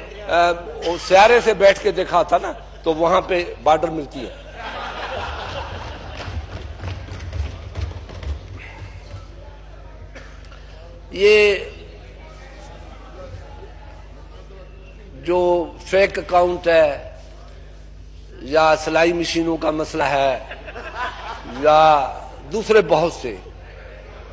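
A man speaks forcefully into a microphone in a large echoing hall.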